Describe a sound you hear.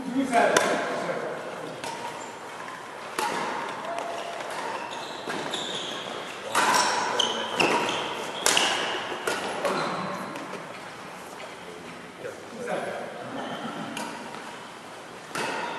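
Shuttlecocks are struck with badminton rackets in sharp pops.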